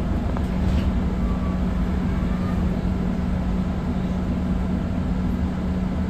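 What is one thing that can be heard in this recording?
A bus engine hums and rumbles steadily.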